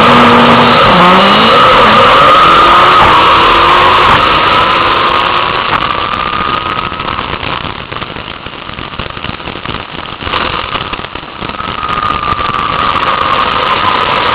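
A racing engine roars loudly, rising in pitch as it shifts through gears.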